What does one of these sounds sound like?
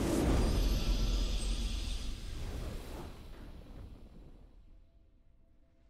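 A triumphant victory fanfare plays and fades away.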